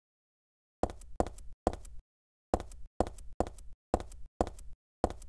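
Footsteps tap slowly and evenly on a hard floor.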